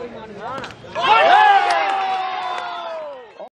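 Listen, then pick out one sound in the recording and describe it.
Young men cheer and shout loudly outdoors.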